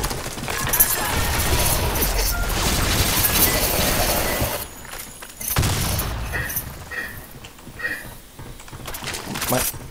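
Footsteps thud quickly on a metal walkway.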